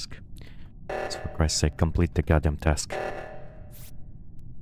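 An alarm blares loudly.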